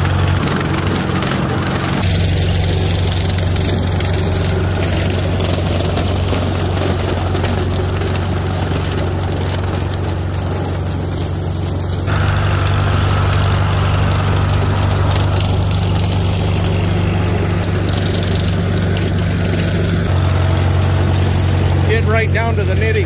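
A tractor engine chugs steadily close by.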